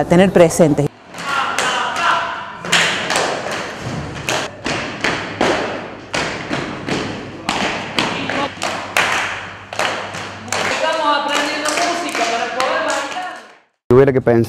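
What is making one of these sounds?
Hands slap rhythmically on a wooden floor.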